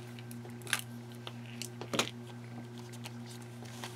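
A page rustles as it is turned.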